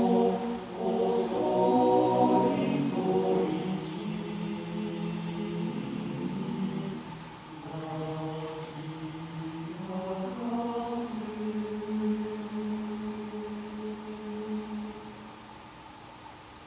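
A male choir sings unaccompanied in a reverberant concert hall.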